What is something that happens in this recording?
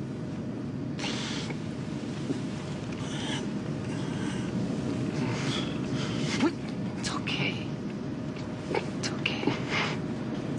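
A woman speaks urgently and close by.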